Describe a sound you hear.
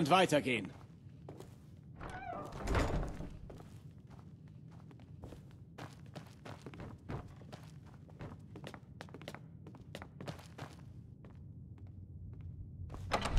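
Footsteps knock on wooden floorboards.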